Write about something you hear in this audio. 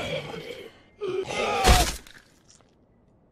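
A hammer strikes with heavy blows.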